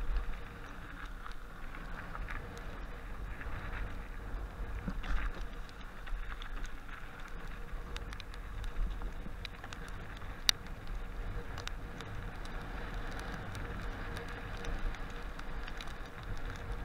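Wind rushes past close by, with a low rumble.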